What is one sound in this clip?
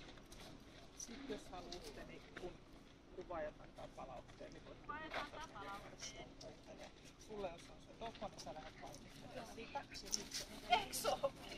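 A woman talks calmly outdoors at a distance.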